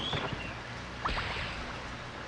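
A magical blast bursts with a loud whoosh.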